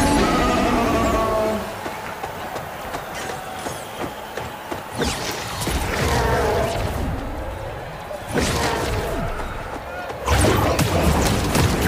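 Blaster shots fire in quick bursts.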